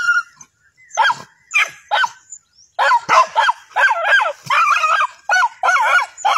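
Dogs whine and yelp excitedly in short bursts.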